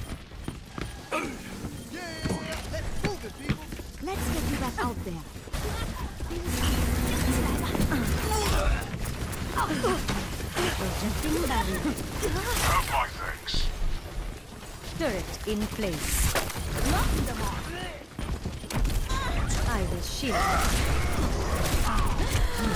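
A pistol fires rapid energy shots.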